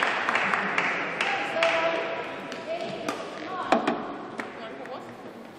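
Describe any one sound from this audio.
A crowd claps and cheers in a large echoing hall.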